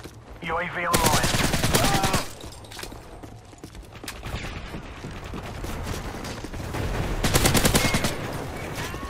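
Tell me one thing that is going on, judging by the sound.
Rapid gunfire bursts out at close range.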